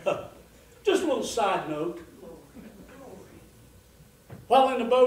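An elderly man speaks expressively nearby.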